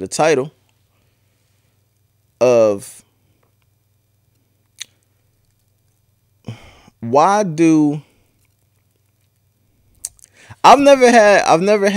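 A man speaks close into a microphone in short bursts with pauses.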